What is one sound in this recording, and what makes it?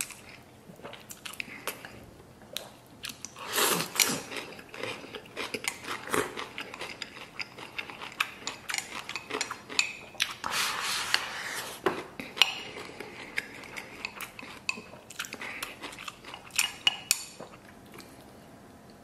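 A man slurps and chews food noisily close by.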